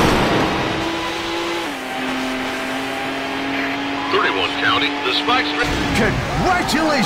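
A race car engine roars at a steady high pitch.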